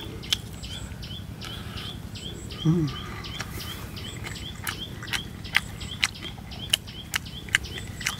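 A man chews crunchy food close by.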